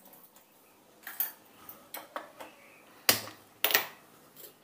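A gas stove igniter clicks several times.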